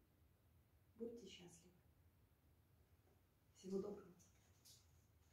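A middle-aged woman speaks briefly and calmly, close by, in short bursts.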